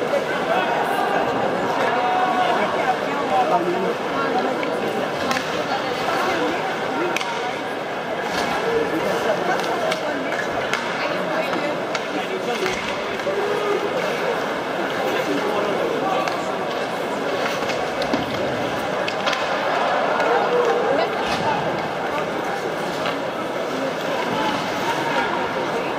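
Ice skates scrape and carve on ice.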